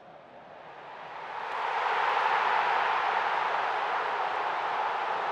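A stadium crowd erupts in a loud roar.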